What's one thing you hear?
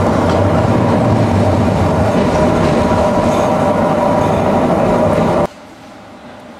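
A tram rumbles and rattles loudly along its tracks.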